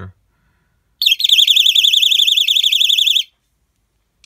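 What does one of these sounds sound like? A fire alarm horn blares with a loud, harsh, rapidly pulsing buzz, then stops.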